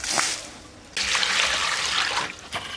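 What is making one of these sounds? Water pours from a bowl into a metal basin and splashes.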